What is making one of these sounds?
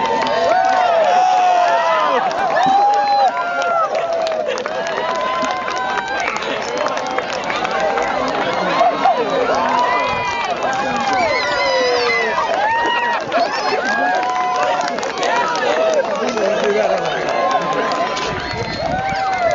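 A crowd of children and adults cheers and shrieks outdoors.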